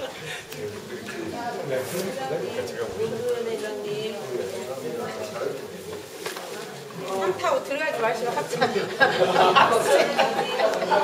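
Several men talk and laugh close by.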